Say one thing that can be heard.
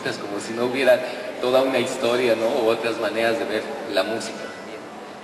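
A man speaks into a microphone with animation, heard through loudspeakers in an echoing room.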